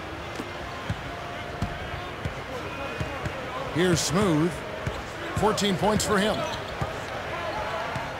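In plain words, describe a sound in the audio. A basketball bounces on a hardwood floor with dull thumps.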